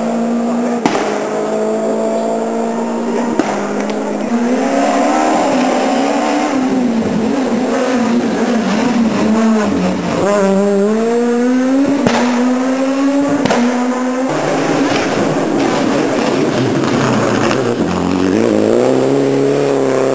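A rally car engine revs hard and roars past nearby.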